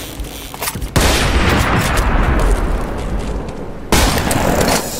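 A blade slashes through the air with a loud whoosh.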